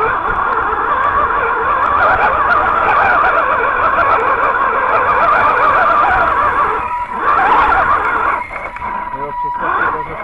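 The tyres of a radio-controlled truck crunch over loose rocks.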